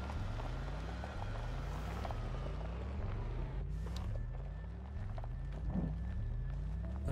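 A vehicle engine hums with a low drone that repeatedly rises in pitch.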